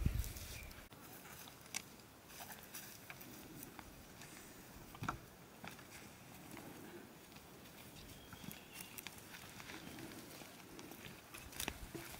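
Footsteps crunch softly on a dry dirt path.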